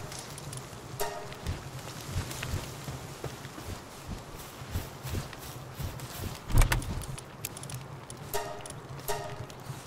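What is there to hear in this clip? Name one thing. A short chime sounds.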